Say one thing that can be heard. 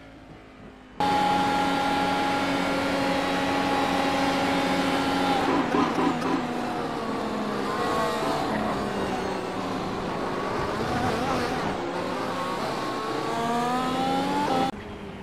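An open-wheel racing car engine screams at speed, rising and falling through gear changes.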